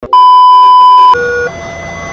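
A steady, high test tone beeps.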